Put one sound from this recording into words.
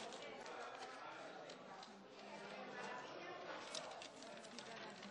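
A crowd of people chatter in an echoing hall.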